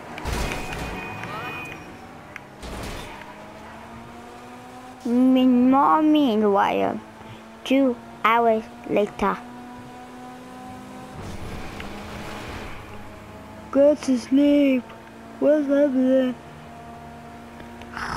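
A car engine hums steadily as it drives along a road.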